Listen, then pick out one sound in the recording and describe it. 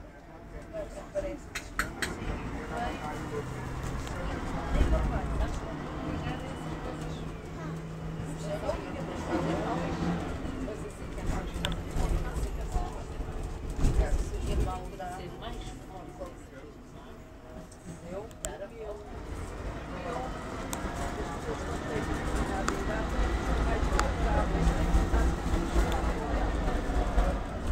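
A vehicle's engine rumbles low and steadily as it drives along a street.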